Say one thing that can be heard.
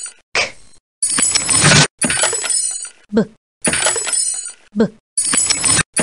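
Wooden crates burst open with a cracking crash.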